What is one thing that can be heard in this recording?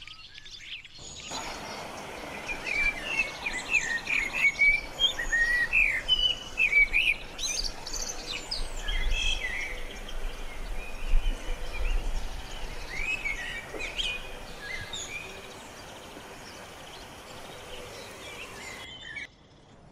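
A blackbird sings a rich, warbling song.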